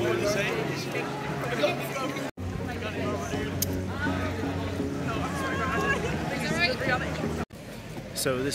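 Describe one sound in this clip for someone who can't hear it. A crowd of people chatter and call out outdoors.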